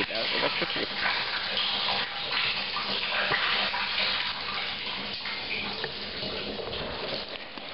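Water gushes from a hose into a hollow plastic tank.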